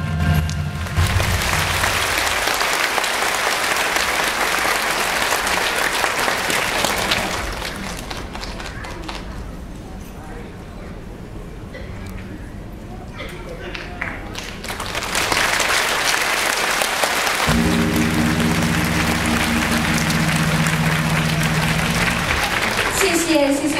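Music plays loudly over loudspeakers in a large hall.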